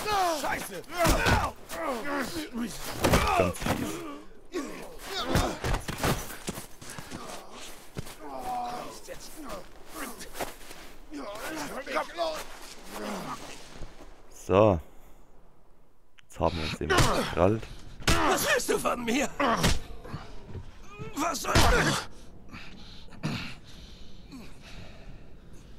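A young man talks with animation, close to a headset microphone.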